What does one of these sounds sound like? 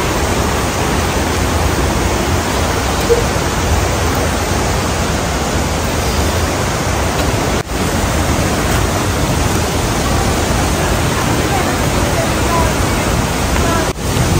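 A mountain stream rushes loudly over rocks nearby.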